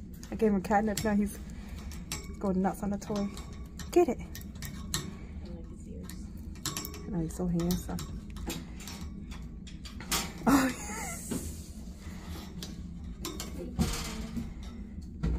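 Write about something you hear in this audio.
A cat paws at a toy, rattling wire cage bars.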